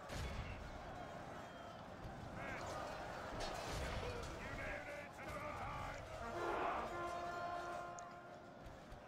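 Weapons clash and clang in a loud battle din.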